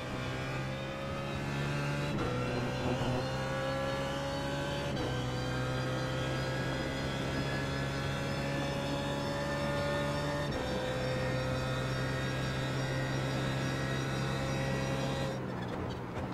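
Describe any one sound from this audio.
A race car engine roars and climbs in pitch, dropping briefly with each gear shift.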